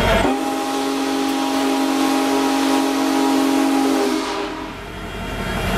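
A locomotive's engine hums loudly as it passes.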